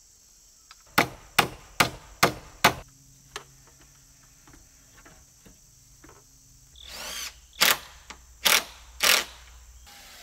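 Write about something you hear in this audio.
A hammer strikes wood in quick, sharp blows outdoors.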